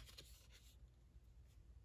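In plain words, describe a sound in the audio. Trading cards rustle softly in a hand.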